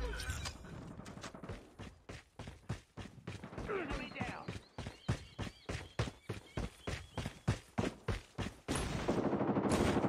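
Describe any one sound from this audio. Footsteps thud quickly and evenly on the ground.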